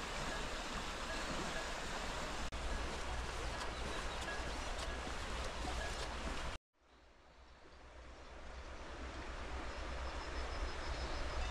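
A river rushes steadily over stones.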